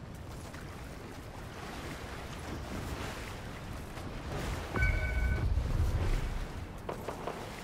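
Water splashes steadily.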